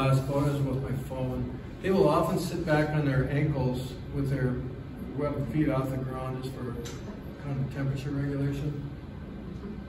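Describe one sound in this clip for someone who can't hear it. An elderly man talks calmly, a little way off in a room with slight echo.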